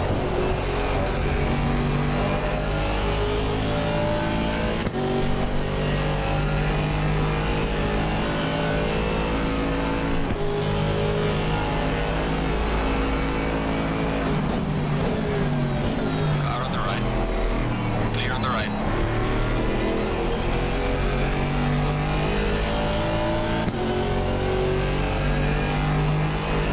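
A racing car engine roars and climbs in pitch through repeated gear changes.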